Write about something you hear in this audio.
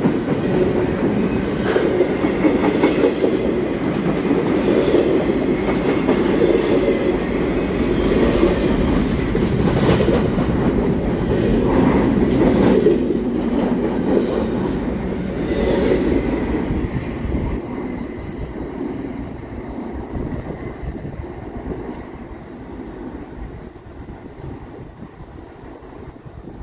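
A freight train rumbles past close by and fades into the distance.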